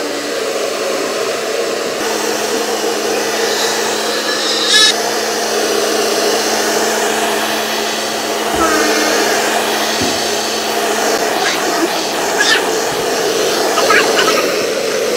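A hair dryer blows with a steady, rushing roar.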